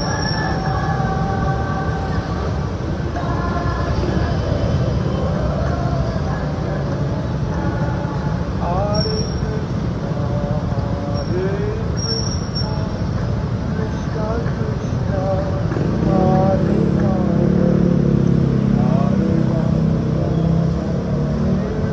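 Heavy traffic rumbles and hums under an overpass.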